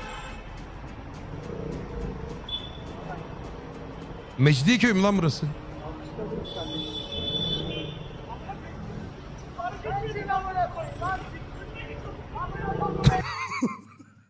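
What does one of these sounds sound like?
Traffic hums and engines drone on a busy road.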